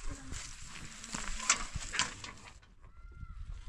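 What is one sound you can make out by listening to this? Milk sloshes and thumps inside a churn rocked back and forth.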